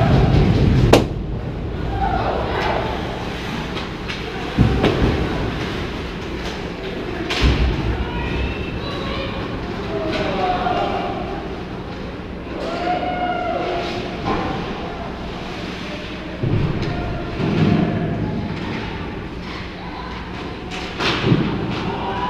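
Hockey sticks and pucks clack sharply, echoing around the rink.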